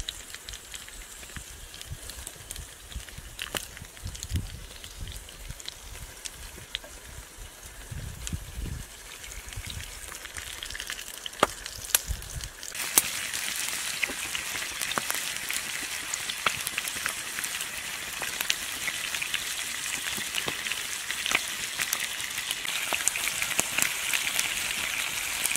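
A wood fire crackles and pops close by.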